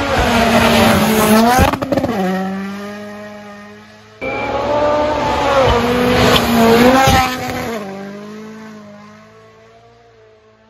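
A rally car engine roars past at high revs and fades into the distance.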